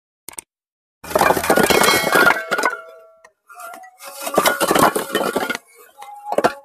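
Bricks scrape and clatter as they are shifted.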